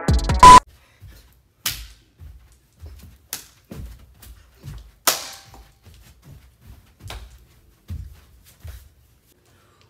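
Feet thump rhythmically on the floor.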